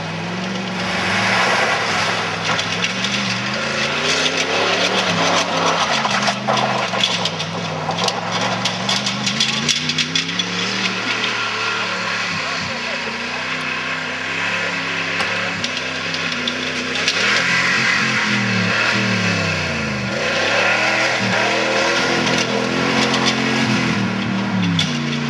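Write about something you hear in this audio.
A truck engine revs hard, rising and falling in pitch.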